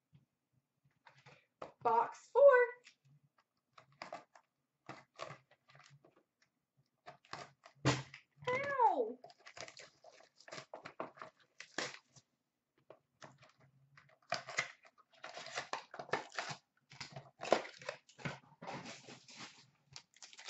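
Card packs rustle and clatter softly as a hand drops them into a plastic bin.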